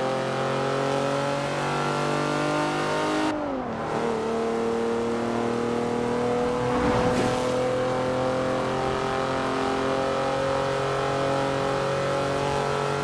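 A car engine drones loudly and climbs slowly in pitch.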